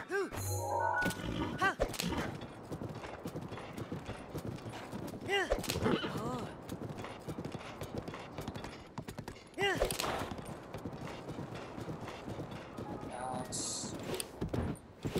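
A horse gallops, hooves thudding steadily.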